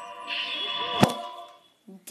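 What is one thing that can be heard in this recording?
A heavy blow strikes with a sharp thud.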